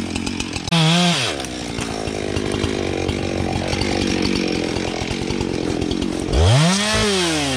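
A chainsaw runs close by, revving loudly up and down.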